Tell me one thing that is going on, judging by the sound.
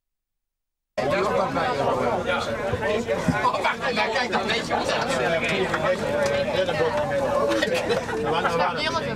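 Many men and women chatter at once, close by.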